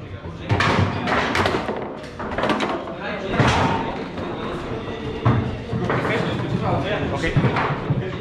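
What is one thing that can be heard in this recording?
A foosball ball knocks against the table walls.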